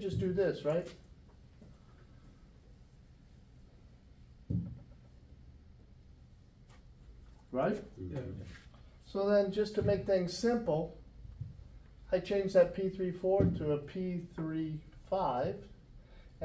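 A middle-aged man speaks calmly and explains, close by, with pauses.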